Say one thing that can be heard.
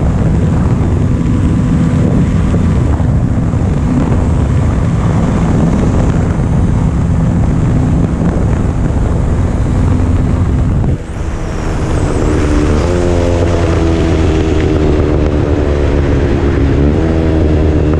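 A motorcycle engine roars steadily.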